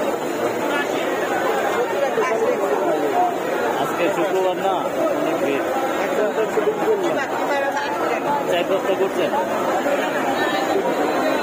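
Oil sizzles and bubbles in a frying pan.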